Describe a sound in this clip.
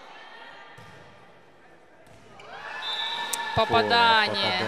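A volleyball is struck during a rally in a large echoing hall.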